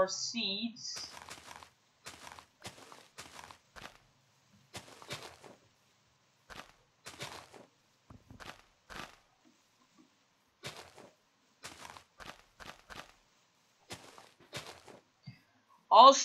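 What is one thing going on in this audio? Grass rustles and crunches in short, quick bursts as it is broken.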